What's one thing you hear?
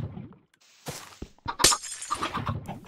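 Blocks crack and crunch as they are broken.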